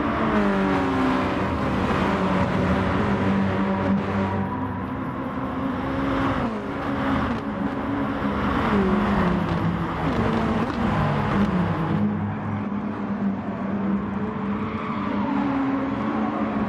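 Racing car engines roar and whine as they rev up and down through gear changes.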